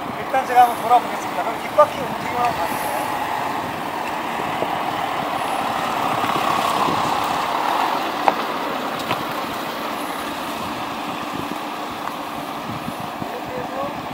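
A car engine hums as an SUV crawls slowly over rough dirt.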